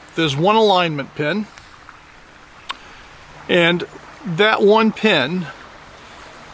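An older man speaks calmly and clearly, close by.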